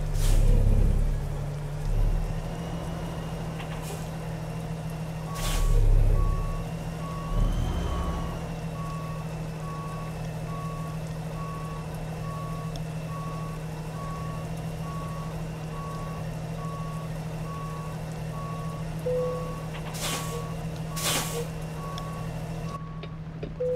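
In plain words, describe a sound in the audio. A truck engine idles with a low steady rumble.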